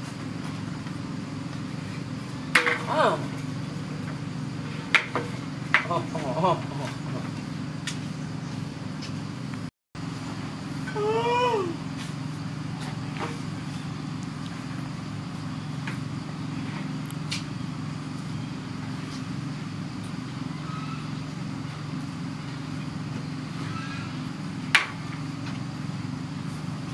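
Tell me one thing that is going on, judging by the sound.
A metal can knocks and rolls on wooden boards.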